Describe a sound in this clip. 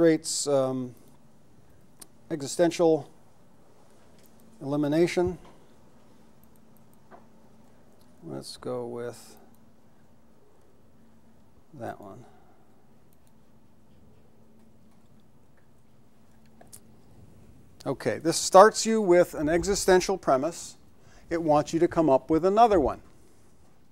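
A man speaks calmly in short bursts with pauses, heard through a microphone in an echoing room.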